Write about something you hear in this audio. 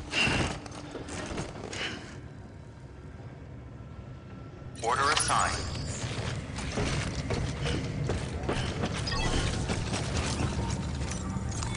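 Heavy footsteps clank on a hard floor.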